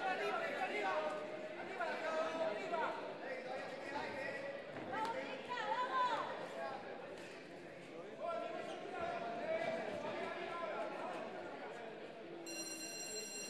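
Spectators shout and call out in a large echoing hall.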